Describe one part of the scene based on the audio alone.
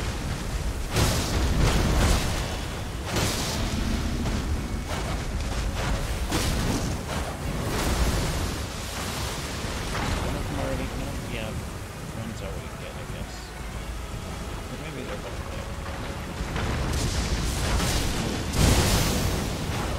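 Magic bursts crackle and shimmer.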